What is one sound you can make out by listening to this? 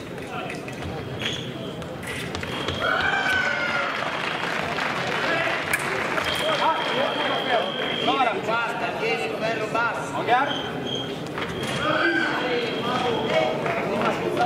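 Fencers' feet shuffle and stamp on the strip in a large echoing hall.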